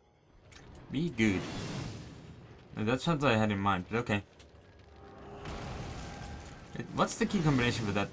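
Magical energy whooshes and crackles.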